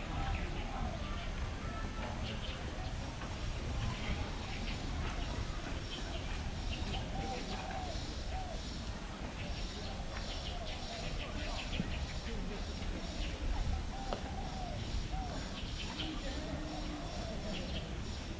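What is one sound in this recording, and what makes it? Adults talk in the distance outdoors.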